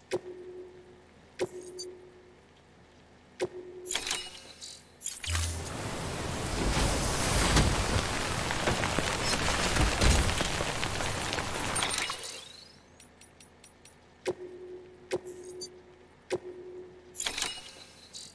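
Menu beeps sound with short clicks.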